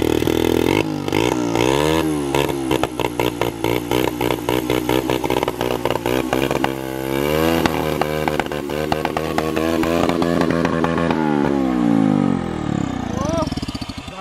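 A small motorcycle engine idles and revs up and down close by.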